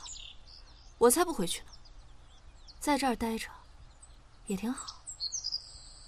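A young woman speaks softly and wistfully, close by.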